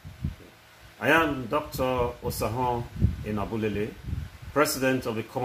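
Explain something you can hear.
A man speaks calmly and formally into a nearby microphone.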